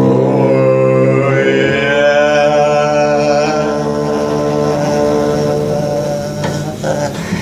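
A man sings loudly along with the bass.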